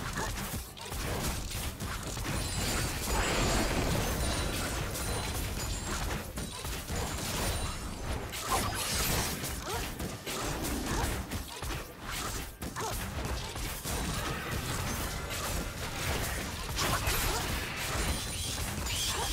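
Weapons clash and strike in a video game battle.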